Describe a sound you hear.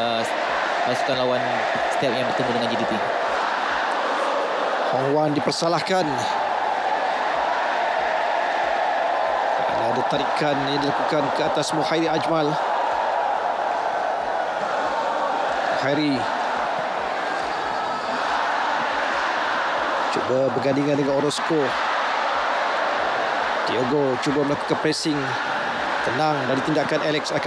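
A large stadium crowd cheers and chants steadily.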